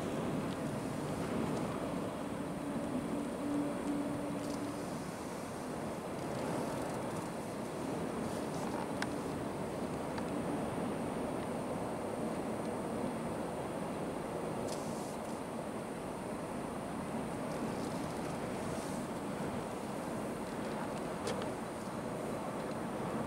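Strong wind roars and buffets steadily outdoors.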